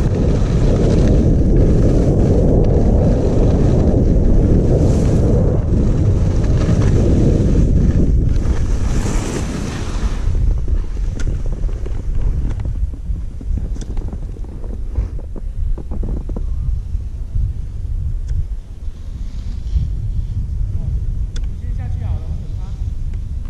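Wind rumbles loudly against the microphone.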